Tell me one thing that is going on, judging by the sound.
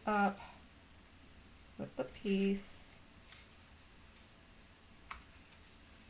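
Stiff paper rustles softly as a card is handled.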